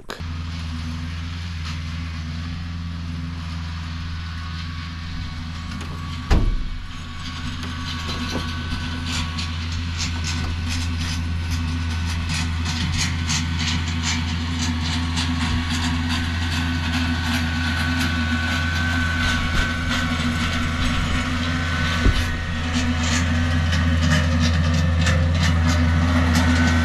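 A tractor engine hums steadily in the distance and slowly grows louder as it approaches.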